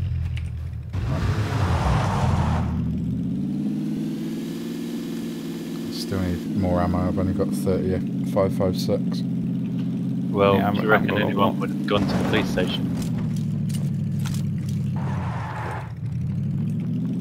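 A car engine runs and revs as the car drives over rough ground.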